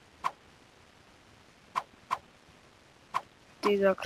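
A game menu gives a short click as an item is selected.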